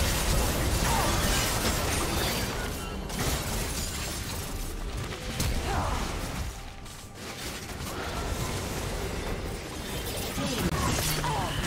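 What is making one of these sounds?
Magic spells whoosh and crackle in a fast fantasy battle.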